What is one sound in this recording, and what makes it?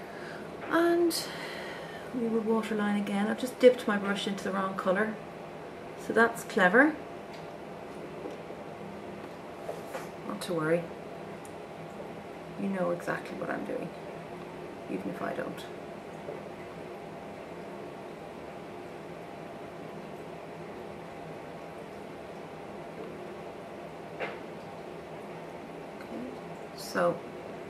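A woman talks calmly and close by, as if to a microphone, in short bursts.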